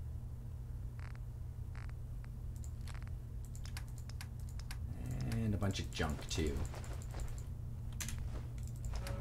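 Soft interface clicks tick as a list is scrolled.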